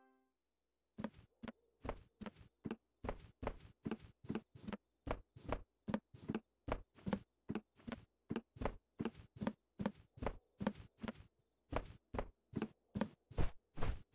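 Footsteps thud steadily on wooden stairs and floorboards.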